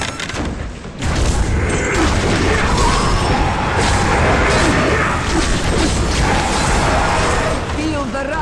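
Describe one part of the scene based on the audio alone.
Fiery spells burst with loud whooshes and blasts.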